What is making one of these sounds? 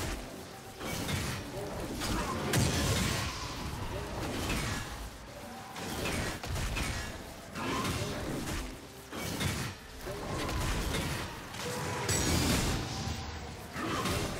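Game combat sound effects clash and whoosh.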